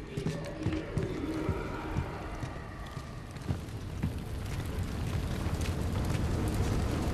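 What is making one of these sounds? Heavy boots thud on a metal floor at a slow walking pace.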